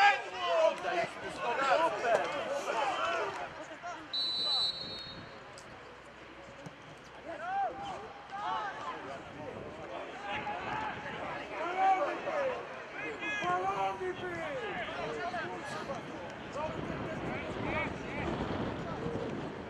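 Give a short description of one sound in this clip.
Men shout across a football pitch outdoors.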